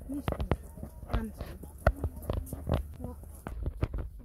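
A toddler's small footsteps patter on a dirt path.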